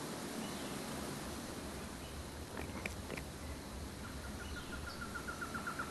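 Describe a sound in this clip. Leaves rustle as an ape pushes through thick undergrowth.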